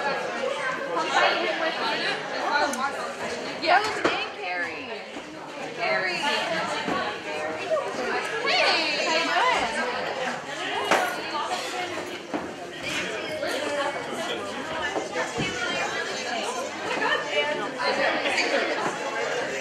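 A crowd of young people chatters nearby in a large echoing room.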